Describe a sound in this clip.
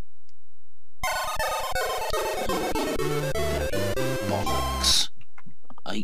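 A Commodore 64 plays a short chiptune jingle.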